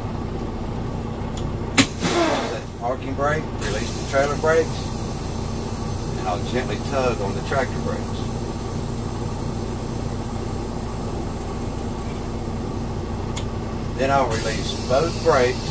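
A truck engine idles with a steady low rumble.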